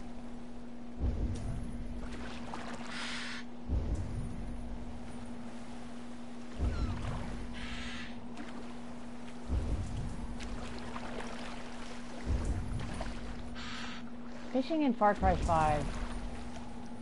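Oars dip and splash into the water in a steady rhythm.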